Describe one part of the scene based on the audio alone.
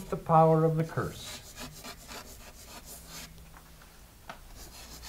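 Chalk scratches on a blackboard.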